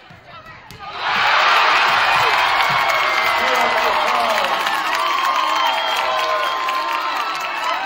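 A crowd cheers and shouts loudly.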